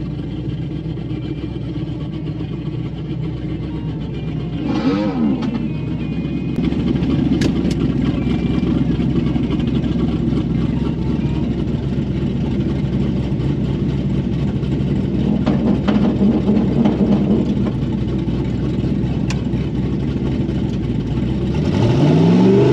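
A race car engine idles with a deep, uneven rumble.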